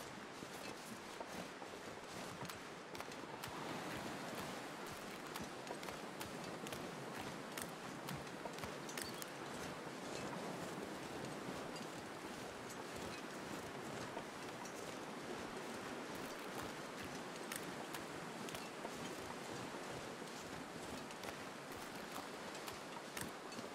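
Footsteps crunch steadily over snow and ice.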